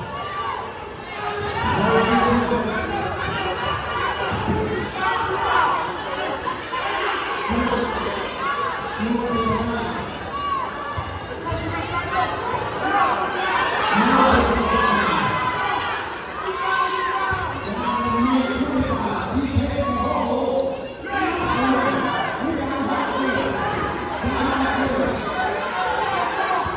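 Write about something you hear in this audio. A crowd of spectators chatters and shouts in a large echoing gym.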